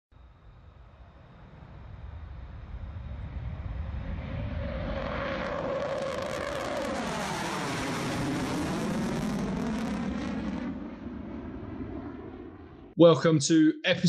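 A jet roars past, swelling loud and then fading as its pitch drops.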